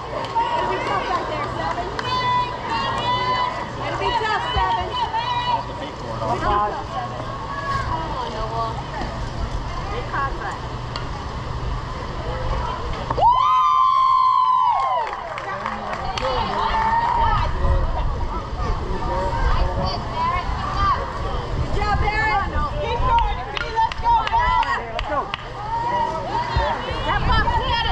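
Children and adults shout and cheer outdoors.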